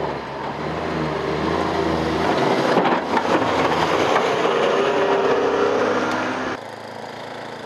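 A plow blade scrapes loudly through snow.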